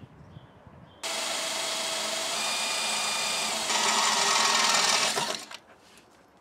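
A cordless drill whirs into metal.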